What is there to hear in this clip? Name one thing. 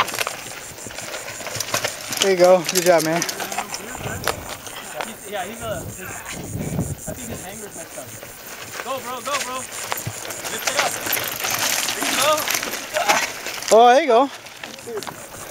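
Bicycle tyres crunch over dirt and loose stones close by.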